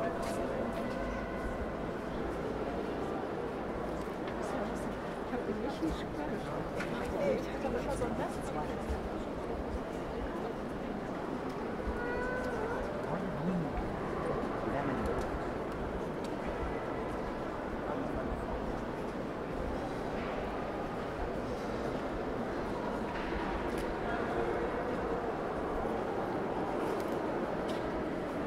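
A crowd of men and women murmurs and chatters in a large, echoing hall.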